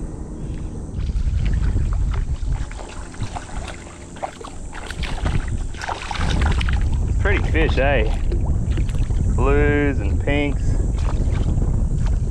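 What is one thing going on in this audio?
A fish splashes and thrashes in shallow water.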